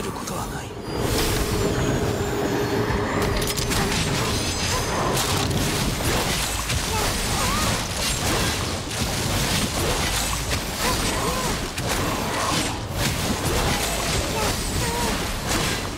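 Rapid blows and magical blasts crash and burst in a fast fight.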